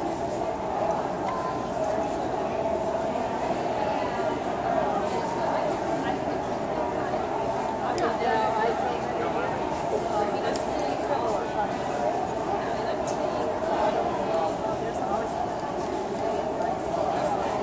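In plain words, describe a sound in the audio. Charcoal scratches and scrapes across paper.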